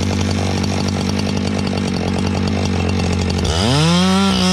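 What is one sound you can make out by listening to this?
A chainsaw idles with a rapid, chugging putter.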